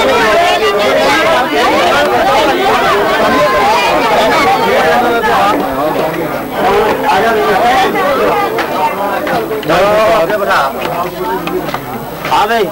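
A crowd of men talk over one another close by.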